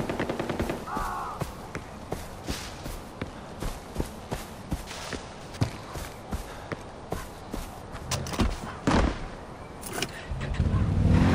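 Footsteps crunch through grass and brush.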